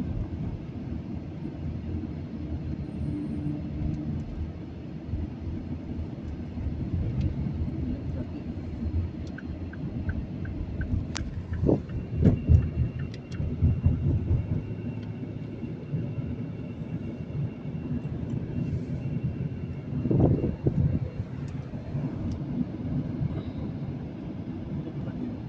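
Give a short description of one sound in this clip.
Tyres roar on a road beneath a moving car.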